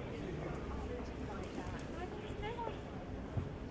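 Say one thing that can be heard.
A young woman chats calmly with a companion close by.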